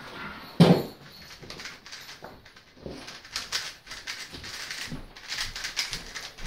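A puzzle cube clicks rapidly as it is turned.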